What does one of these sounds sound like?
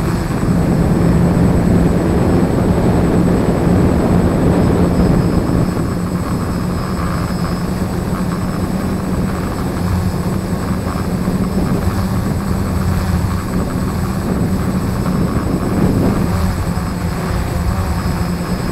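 Propellers hum steadily close by.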